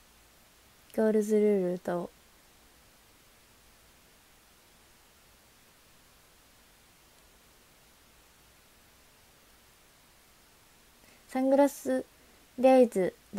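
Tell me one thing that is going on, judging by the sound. A young woman speaks briefly and brightly, close to a microphone.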